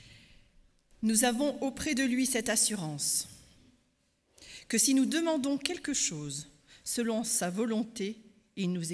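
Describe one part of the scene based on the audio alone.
A woman speaks calmly into a microphone, heard through loudspeakers in a large hall.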